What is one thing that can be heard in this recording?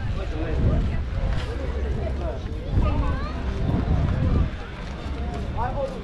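Wind blows and rumbles steadily outdoors.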